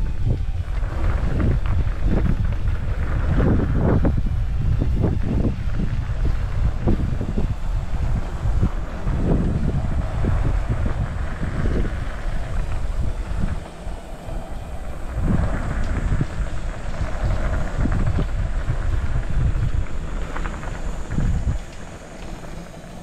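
Wind rumbles loudly against a moving microphone.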